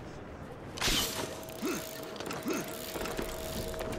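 A rope reels in with a whirring hum.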